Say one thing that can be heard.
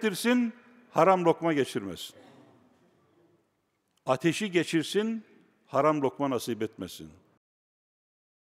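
An elderly man speaks calmly through a microphone, with a slight echo.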